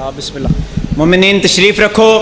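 A man speaks loudly over a loudspeaker.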